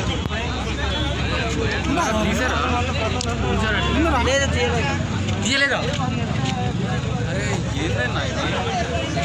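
A crowd of men talk loudly and all at once nearby.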